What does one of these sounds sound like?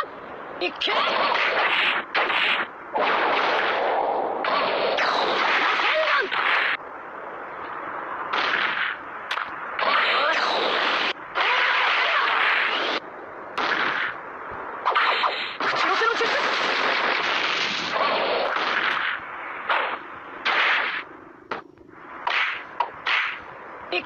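Game punches and kicks land with sharp hits.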